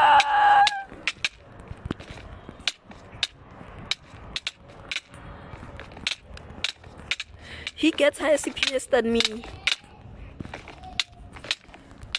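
Sharp game hit sounds click again and again in quick succession.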